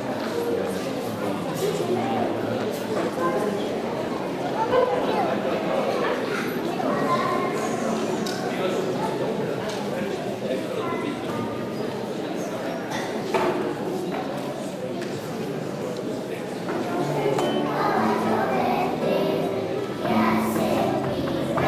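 Many young children chatter and call out in an echoing hall.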